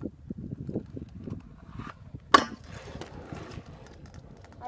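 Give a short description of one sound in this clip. Scooter wheels roll over asphalt and pass close by.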